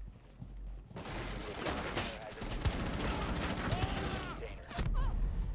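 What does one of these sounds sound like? A rifle fires in a loud, rapid burst.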